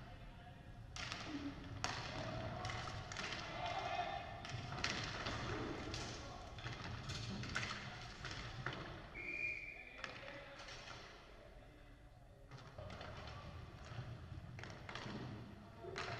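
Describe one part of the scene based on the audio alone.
Hockey sticks clack against a ball and against each other.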